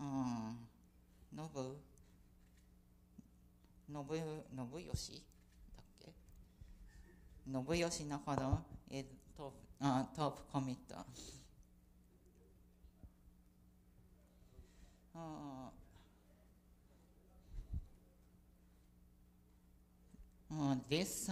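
A young woman speaks calmly into a microphone, pausing between phrases.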